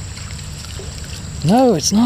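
A small fish splashes at the water's surface.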